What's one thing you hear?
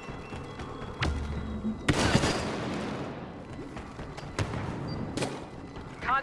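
Laser blasters fire in sharp bursts.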